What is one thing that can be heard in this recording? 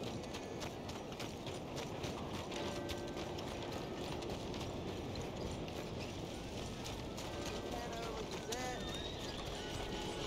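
Footsteps thud quickly on a dirt road as a man runs.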